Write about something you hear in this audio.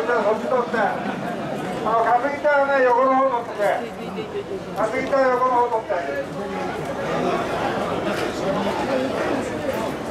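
A large outdoor crowd of men chants loudly in rhythm.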